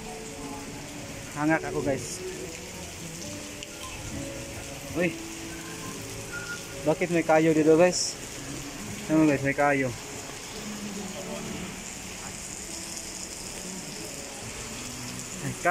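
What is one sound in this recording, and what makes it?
Rain patters steadily on wet pavement outdoors.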